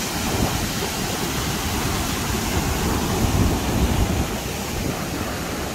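Wind buffets outdoors, rumbling against the microphone.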